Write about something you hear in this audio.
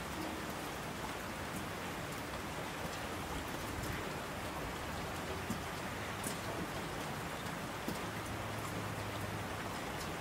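Mountain streams rush and roar.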